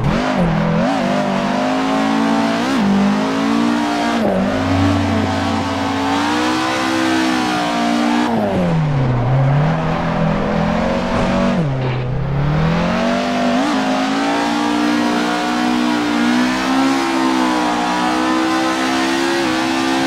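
Tyres screech as a car slides through bends.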